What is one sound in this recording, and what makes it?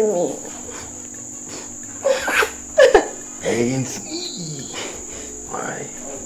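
A young woman sobs and cries out in distress close by.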